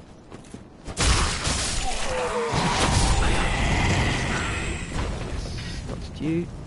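Swords clash and slash in a fierce fight.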